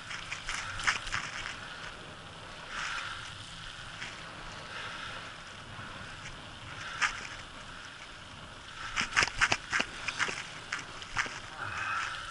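Bicycle tyres roll steadily along an asphalt road.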